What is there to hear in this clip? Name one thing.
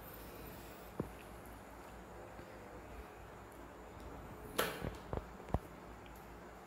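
Small plastic switches and wires click and tap under handling.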